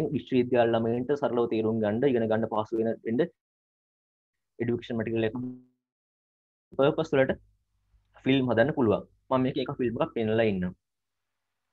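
A man speaks calmly through an online call microphone, in short bursts with pauses.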